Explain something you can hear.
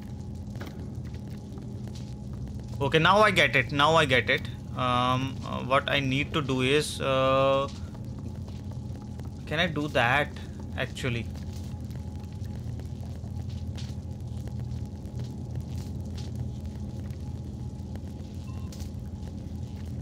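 Small footsteps patter on a wooden floor.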